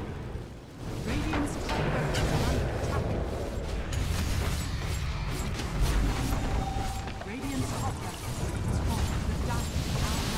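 Game combat effects clash and crackle in a busy battle.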